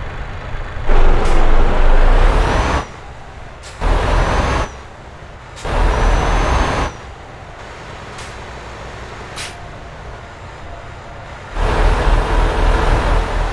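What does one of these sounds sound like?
A truck engine roars loudly in short bursts as it accelerates.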